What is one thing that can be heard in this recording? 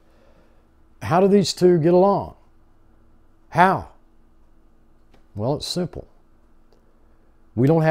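An elderly man speaks slowly and calmly, close to a microphone, with long pauses.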